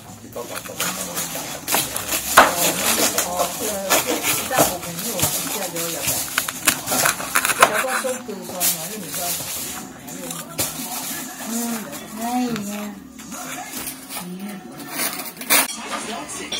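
A cleaver chops through meat onto a wooden board with sharp knocks.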